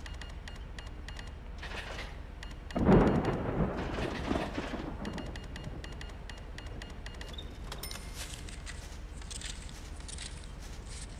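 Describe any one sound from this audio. A cash register drawer rattles as cash is taken out.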